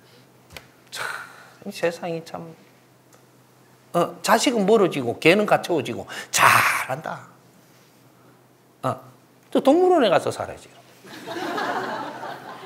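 An elderly man speaks with animation close to a microphone, pausing between phrases.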